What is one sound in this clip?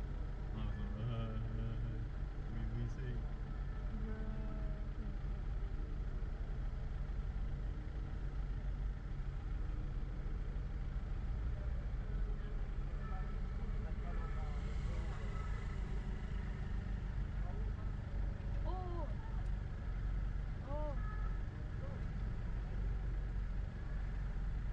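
City traffic hums around in the street.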